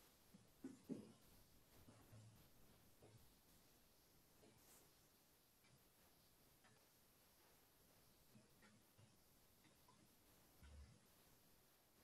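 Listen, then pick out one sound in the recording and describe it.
An elderly man speaks quietly and slowly through a computer microphone.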